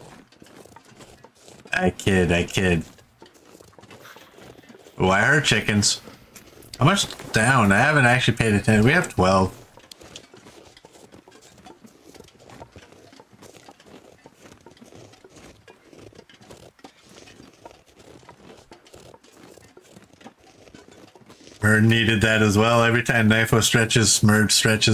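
Footsteps crunch through deep snow.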